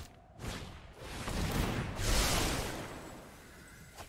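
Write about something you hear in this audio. A card game plays a swelling whoosh effect.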